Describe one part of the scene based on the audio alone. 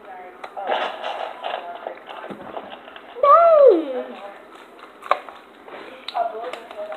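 A plastic water bottle crinkles and crackles.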